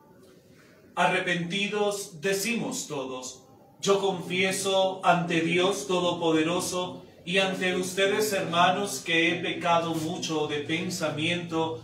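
A man speaks calmly and clearly into a nearby microphone.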